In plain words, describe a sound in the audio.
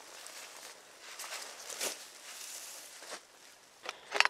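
A backpack rustles as a man handles it.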